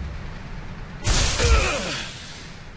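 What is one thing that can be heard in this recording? A body thuds onto a metal floor.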